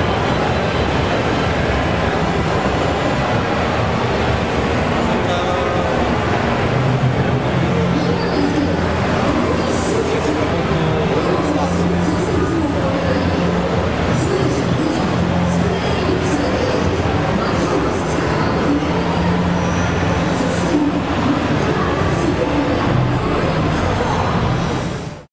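Video game music plays steadily through a television speaker.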